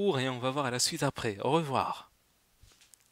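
A young man speaks cheerfully and close into a headset microphone.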